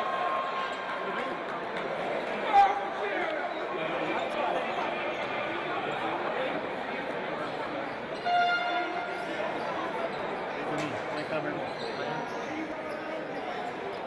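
Sneakers squeak on the court as players run.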